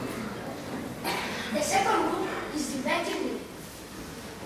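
A young boy speaks loudly in a large hall.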